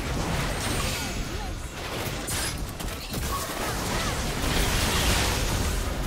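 Hits and blasts thump in quick succession.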